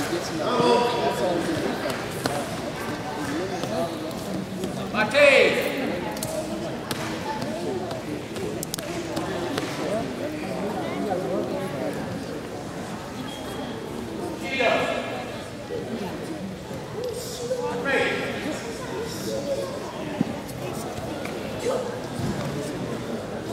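Spectators chatter in a large echoing hall.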